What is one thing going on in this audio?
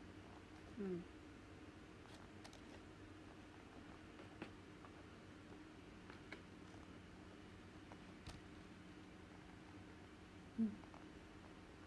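A young woman makes short humming sounds close by.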